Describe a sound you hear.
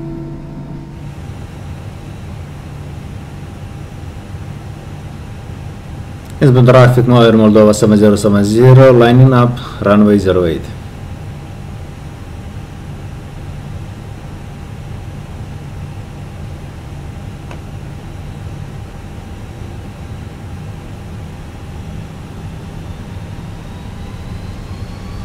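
Airliner jet engines idle with a low hum, heard from the cockpit.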